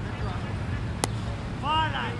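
A cricket bat cracks against a ball in the distance, outdoors.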